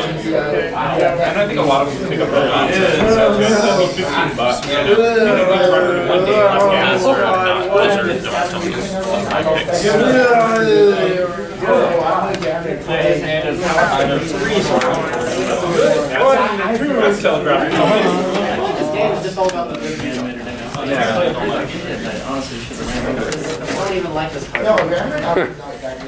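Playing cards rustle and slide softly as hands handle them.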